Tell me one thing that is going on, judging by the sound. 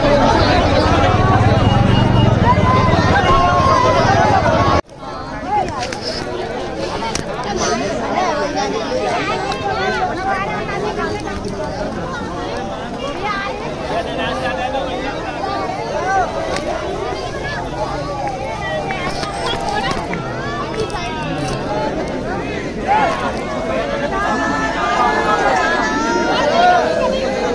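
A large crowd of men and women chatters and shouts close by outdoors.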